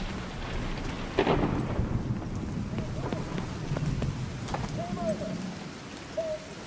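Footsteps splash on wet ground.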